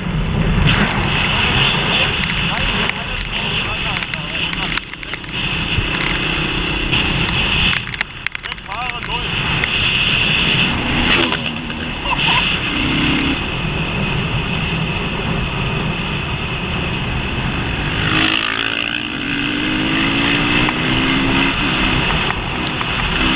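A motorcycle engine roars steadily at speed.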